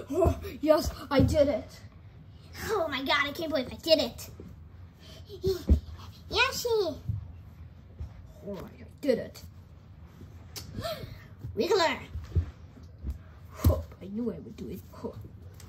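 Soft toys drop onto a carpet with dull, soft thuds.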